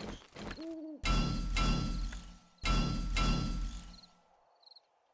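A hammer thuds against wood.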